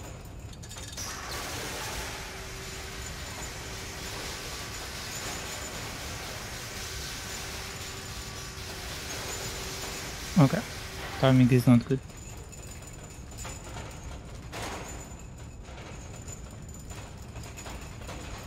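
A small metal cart rolls along a track.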